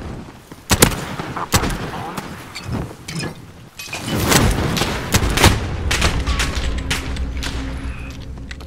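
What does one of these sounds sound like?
Pistol shots crack sharply, one after another.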